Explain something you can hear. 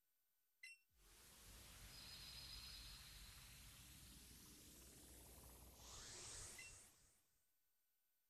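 A loud rushing whoosh swells and fades as a battle begins.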